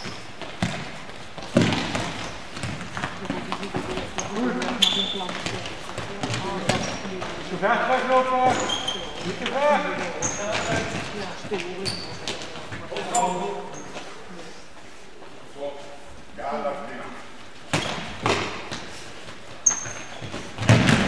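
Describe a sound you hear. A football thuds as players kick it in a large echoing hall.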